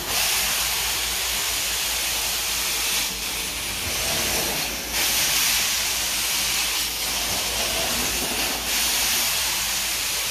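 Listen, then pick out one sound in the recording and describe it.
A carpet extractor wand hisses loudly as it sucks water from the carpet, rising and falling with each stroke.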